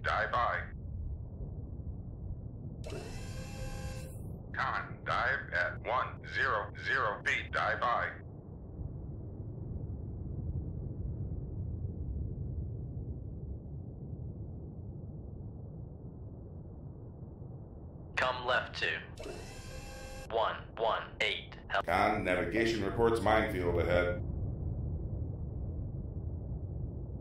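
A submarine's engine rumbles low and steady underwater.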